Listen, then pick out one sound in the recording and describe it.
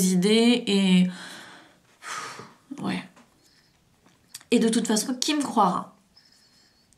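A young woman speaks expressively close to a microphone.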